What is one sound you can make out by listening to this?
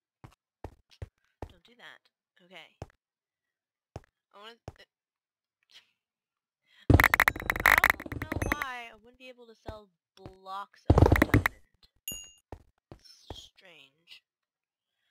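A pickaxe chips at stone blocks with short, dry knocks.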